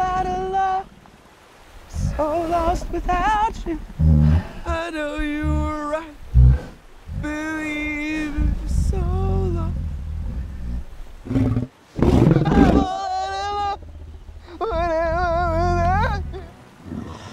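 A young man sings up close in a wavering, emotional voice.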